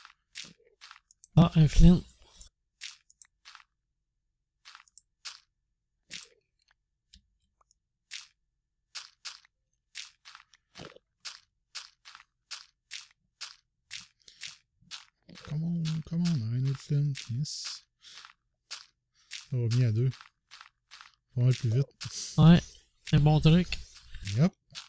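Stone blocks crunch with short, quick taps as they are dug and placed.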